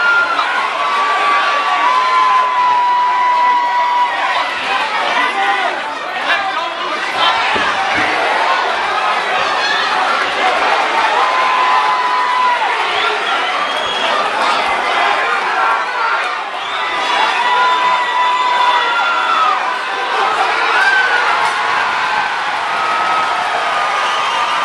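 A crowd in a large hall cheers and shouts continuously.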